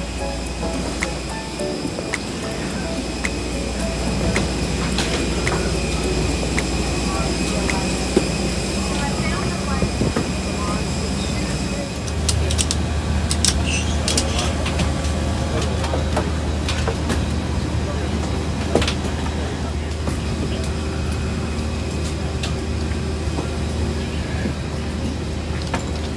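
A low, steady hum fills an aircraft cabin and grows louder partway through.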